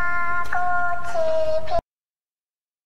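A computer game plays a short, bright tune.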